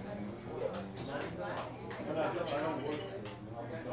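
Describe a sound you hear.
A saxophone plays.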